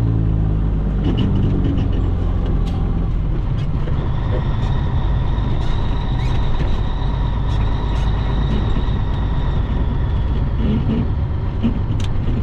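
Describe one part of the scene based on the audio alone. Small clicks and rattles sound inside the cab.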